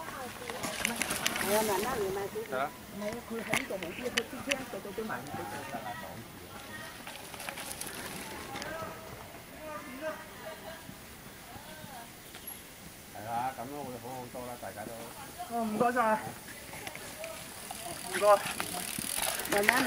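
Bicycle tyres roll and crunch over a dirt trail as riders pass close by.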